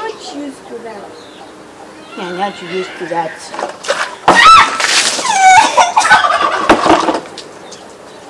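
A young girl talks and laughs loudly nearby.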